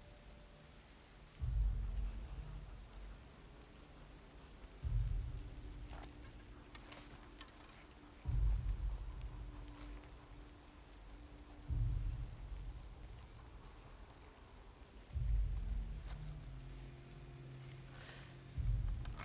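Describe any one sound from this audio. Grass rustles as a person crawls through it.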